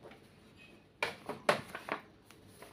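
Paper rustles and crinkles in a hand.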